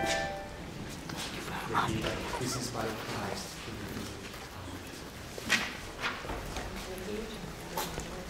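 Handbells knock and clatter as they are set down.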